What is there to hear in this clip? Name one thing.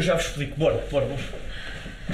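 A young man speaks calmly close to the microphone.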